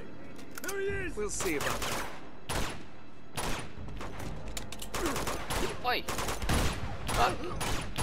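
Gunshots ring out in rapid bursts.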